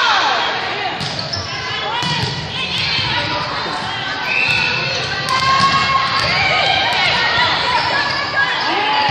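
A volleyball thuds off players' hands.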